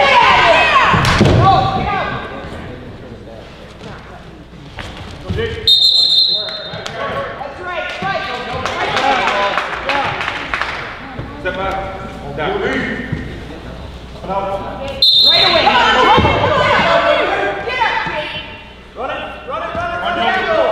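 A man shouts in a large echoing hall.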